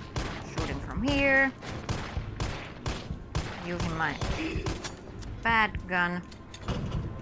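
A young woman exclaims close to a microphone.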